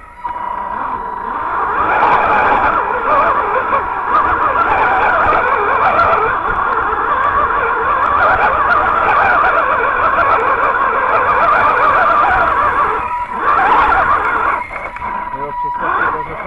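The electric motor of a radio-controlled truck whines.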